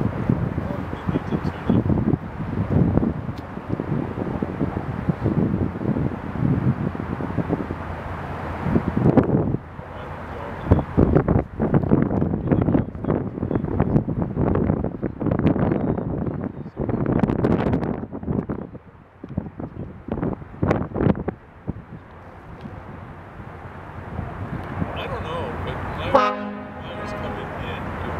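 A large ship's engine rumbles low in the distance.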